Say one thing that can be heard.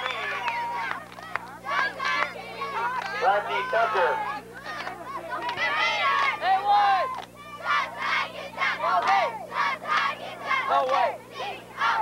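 Women close by shout and cheer with excitement.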